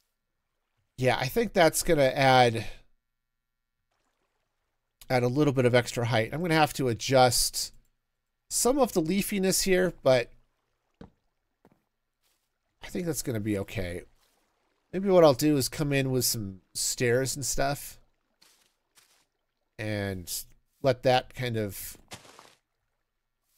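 A middle-aged man talks with animation into a close microphone, in short bursts.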